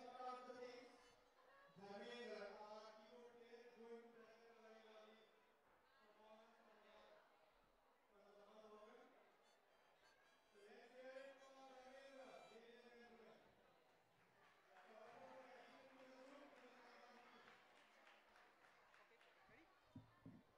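A man sings into a microphone through loudspeakers in a large echoing hall.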